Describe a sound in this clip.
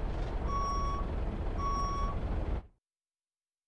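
A truck engine rumbles low.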